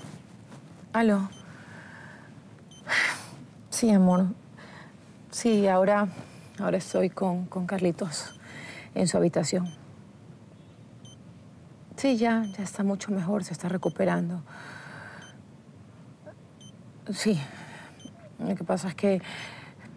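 A young woman speaks on a phone in short, worried phrases.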